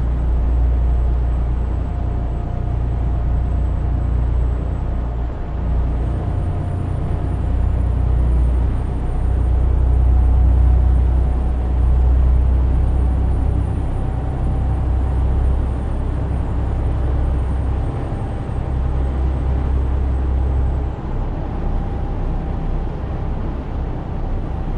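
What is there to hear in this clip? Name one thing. Tyres roll on a road with a steady rumble.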